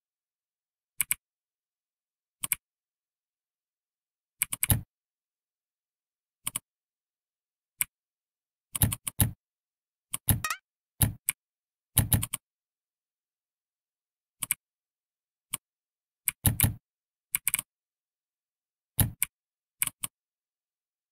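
Soft clicks and pops sound as each letter is typed.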